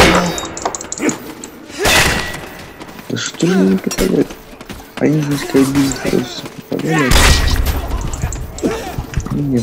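Metal swords clash and clang.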